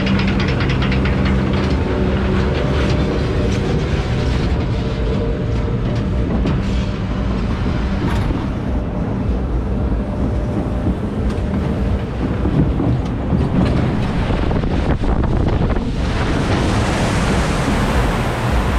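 A fairground ride rumbles and rattles as it swings through the air.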